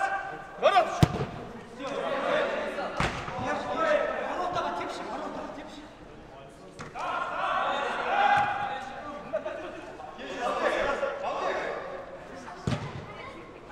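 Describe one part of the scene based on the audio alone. A football is kicked with a sharp thud in a large echoing hall.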